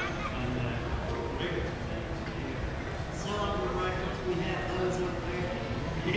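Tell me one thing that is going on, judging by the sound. A fiddle plays through a loudspeaker outdoors.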